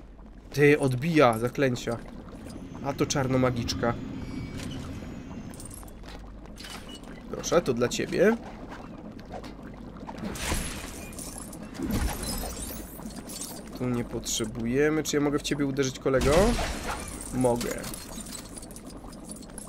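Coins tinkle and chime as they are collected.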